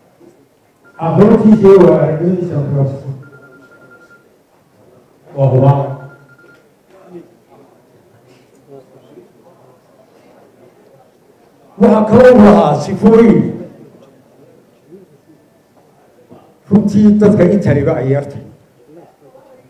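An elderly man speaks slowly into a microphone over a loudspeaker, in bursts with long pauses.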